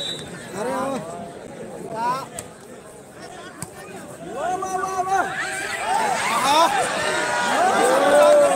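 A large crowd outdoors cheers and shouts loudly.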